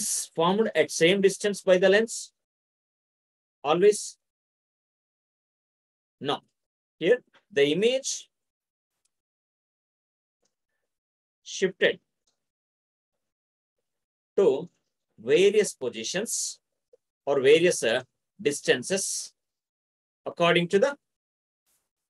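A man speaks calmly into a microphone, explaining in short phrases with pauses.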